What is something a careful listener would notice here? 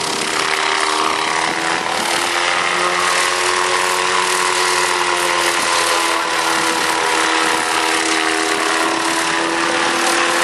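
A small helicopter's engine whines steadily overhead.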